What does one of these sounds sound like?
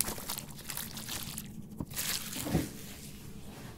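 Plastic wrap crinkles as it is pulled off.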